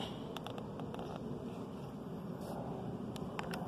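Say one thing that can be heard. Paper pages rustle as a book's page is turned.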